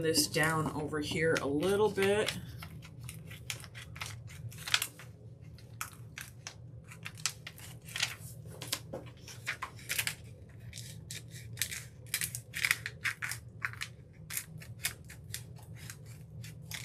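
Scissors snip through paper with sharp clicks.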